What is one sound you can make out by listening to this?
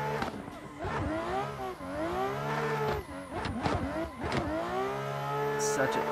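A racing car engine revs up and down sharply as gears shift.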